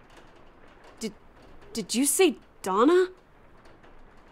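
A young woman speaks haltingly in a shaken voice.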